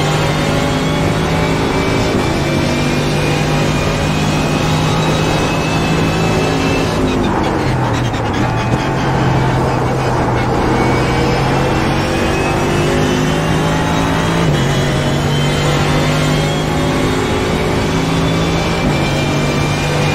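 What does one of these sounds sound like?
A racing car engine roars at high revs, dropping as the car brakes and rising again as it speeds up.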